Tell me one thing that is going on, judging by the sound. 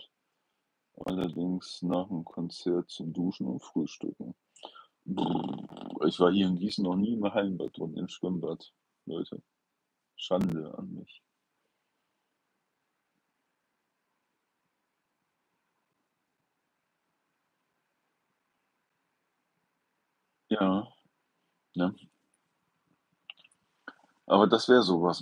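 An older man talks calmly and close to the microphone, with long pauses.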